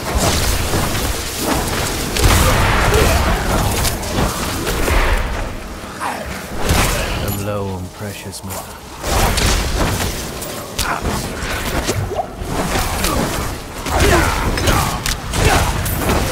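Magic spells crackle and explode over and over.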